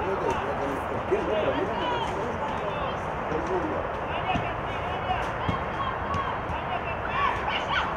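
Players shout and call out across a field outdoors.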